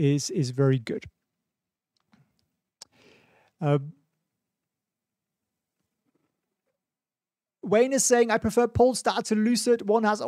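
A man speaks calmly and closely into a microphone, with short pauses.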